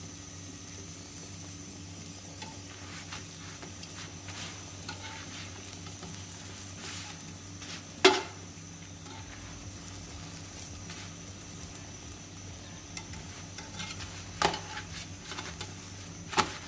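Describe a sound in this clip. A refrigerator hums steadily.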